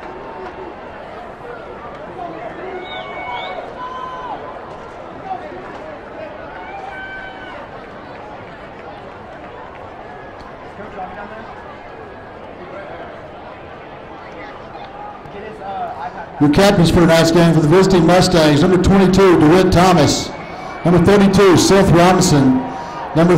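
A crowd murmurs and chatters in a large open stadium.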